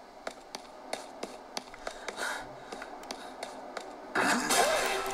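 Game sound effects play from a handheld console's small speakers.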